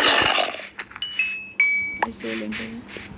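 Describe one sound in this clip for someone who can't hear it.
A sword strikes a creature with sharp, short hits.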